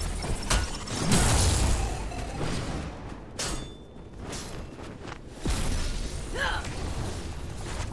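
Explosions and magic blasts boom during a fight.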